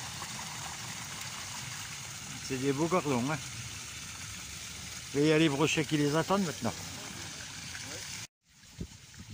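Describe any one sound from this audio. Water splashes and gushes out of a bin into a pond.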